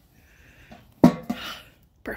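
A metal grill lid shuts with a clunk.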